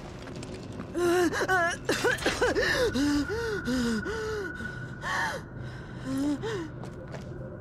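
A young woman speaks softly and urgently, close by.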